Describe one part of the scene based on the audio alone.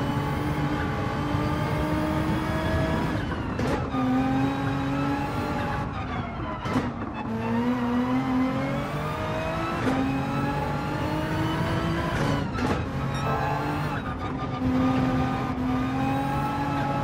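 A racing car engine roars loudly, rising in pitch as it speeds up and dropping with each gear shift.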